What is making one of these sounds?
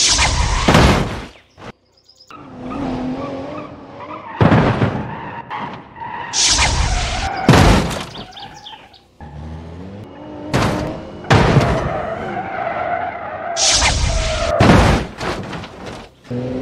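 A vehicle's engine whines and revs.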